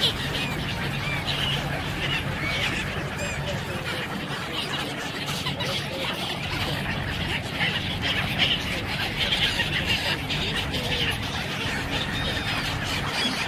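Gulls call over the water.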